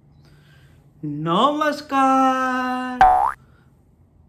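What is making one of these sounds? A young man vocalises loudly in short, drawn-out sung tones close by.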